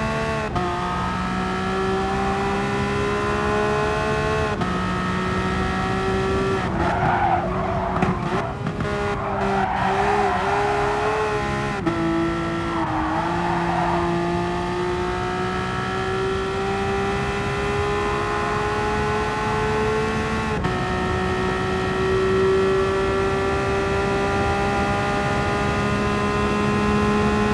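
A racing car engine revs hard and climbs in pitch through each gear, dropping sharply at every gear change.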